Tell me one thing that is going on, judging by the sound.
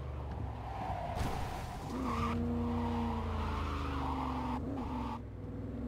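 Car tyres screech on a turn.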